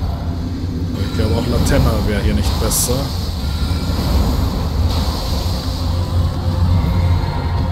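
A magical spell whooshes and crackles.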